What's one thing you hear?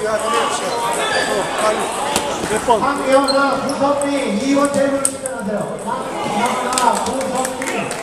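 A table tennis ball clicks off paddles in a large echoing hall.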